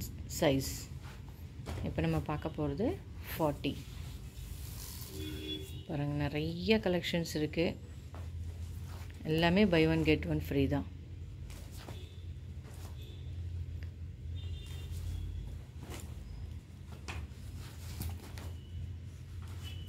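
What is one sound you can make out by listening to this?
Denim jeans rustle and flap as they are laid out and folded.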